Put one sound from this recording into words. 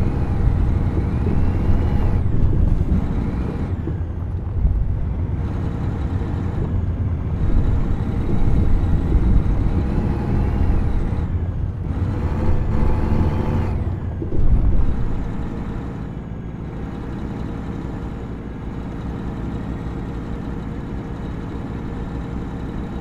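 A truck engine rumbles low and steady, rising and falling in pitch.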